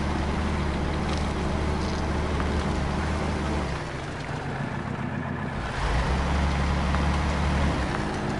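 A heavy truck engine rumbles and strains at low speed.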